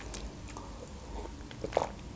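A young woman sips a drink and swallows.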